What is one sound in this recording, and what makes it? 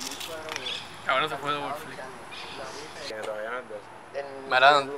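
A young man talks casually nearby, outdoors.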